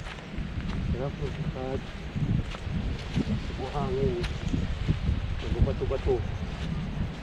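A man speaks casually, close by.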